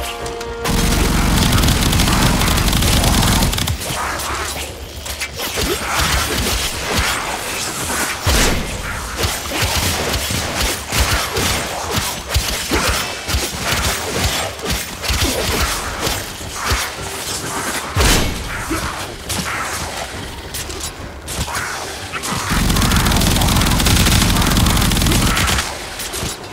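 A heavy gun fires in a rapid, roaring stream.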